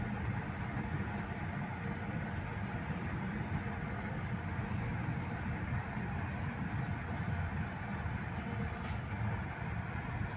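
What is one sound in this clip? Tyres rumble on the road as the car drives.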